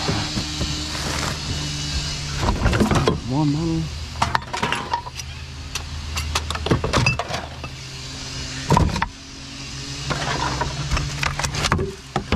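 Rubbish rustles as a hand rummages through a bin.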